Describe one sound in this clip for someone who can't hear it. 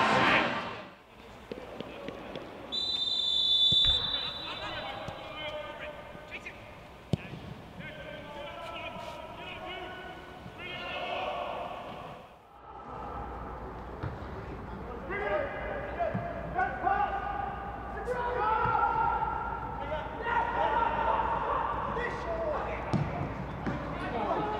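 Men shout to each other across an open pitch.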